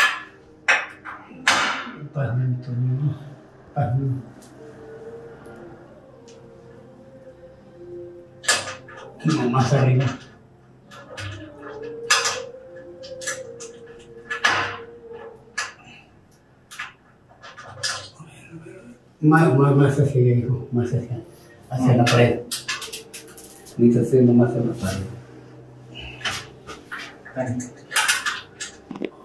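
Small metal parts click and tap against glass as a hinge is fitted.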